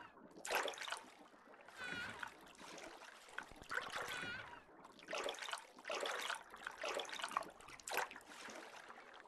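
Water splashes and churns in bursts as a shark bites its prey.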